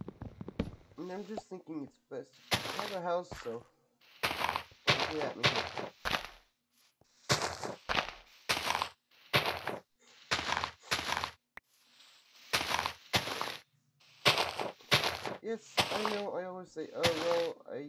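A man speaks with animation, close to a headset microphone.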